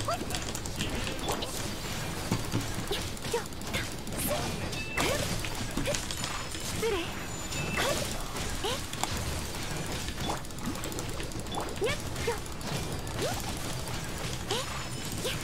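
Icy blasts burst and shatter with a crackling crash.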